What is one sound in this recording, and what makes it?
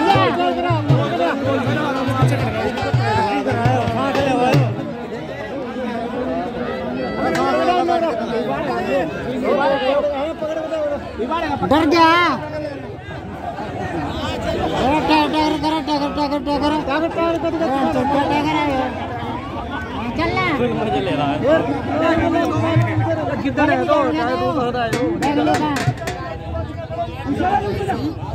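A man announces with animation through a loudspeaker, outdoors.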